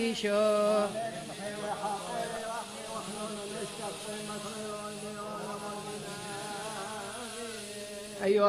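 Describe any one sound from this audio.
A congregation sings a hymn together in a large echoing hall.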